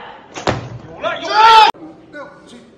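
A young man grunts loudly with effort.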